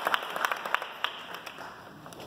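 People applaud briefly.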